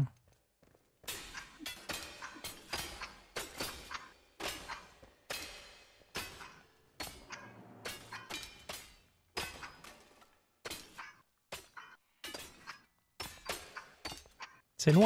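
A pickaxe strikes rock over and over with sharp metallic clinks.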